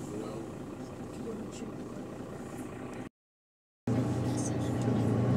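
A bus engine rumbles steadily while the bus drives.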